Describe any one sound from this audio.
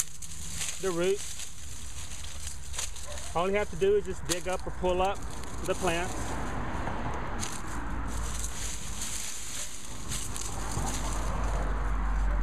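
Dry leaves and stalks rustle and crackle as a hand digs through them.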